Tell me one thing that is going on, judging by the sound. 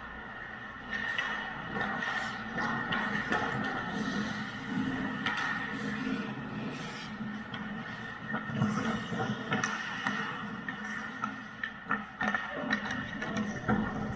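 Hockey sticks clack against the puck and the ice.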